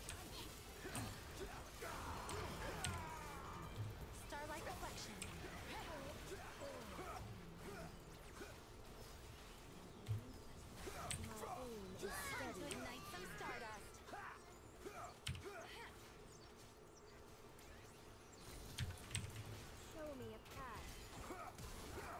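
Spell blasts and hits crackle in a video game battle.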